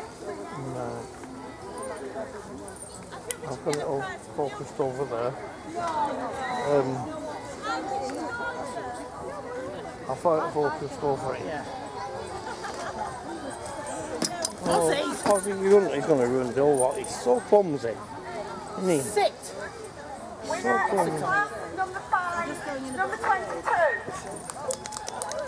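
Men and women chat casually nearby outdoors.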